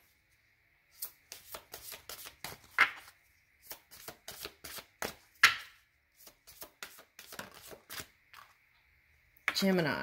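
Playing cards are shuffled with quick, soft flicks.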